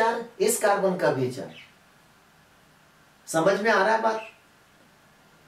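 A man speaks calmly and clearly into a close microphone, in short phrases.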